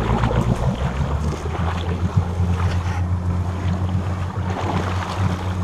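Water splashes and churns around a moving vehicle.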